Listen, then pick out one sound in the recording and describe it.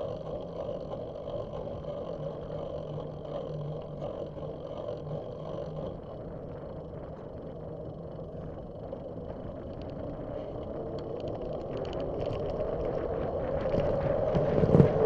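Tyres hum steadily on smooth pavement.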